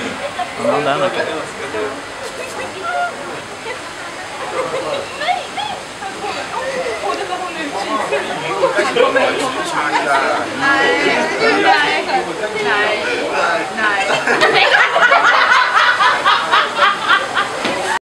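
Children talk and exclaim excitedly close by.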